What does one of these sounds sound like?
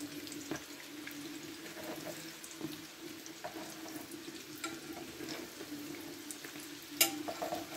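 Oil sizzles and crackles in a frying pan.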